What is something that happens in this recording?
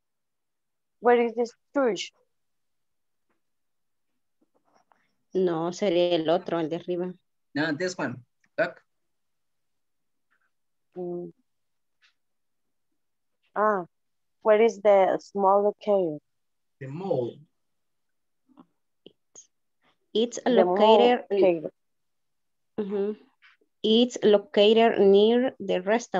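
A woman speaks calmly in short phrases over an online call.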